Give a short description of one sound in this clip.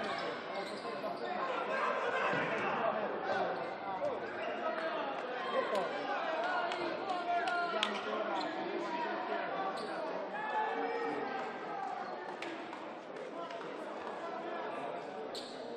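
Players shout to each other across the court.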